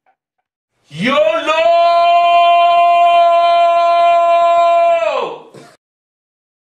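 A man blows a loud, steady whistling note through his hands.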